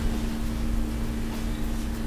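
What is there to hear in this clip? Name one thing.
Small glass beads clink softly as a needle picks them up.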